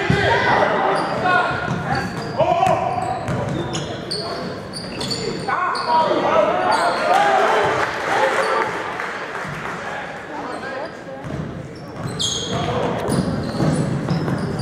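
Young men shout and call out in an echoing gym.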